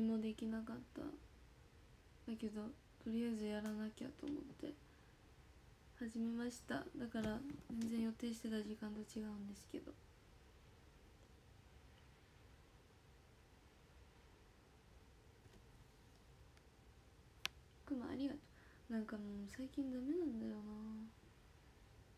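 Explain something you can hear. A young woman speaks quietly and close by, in short bursts with pauses.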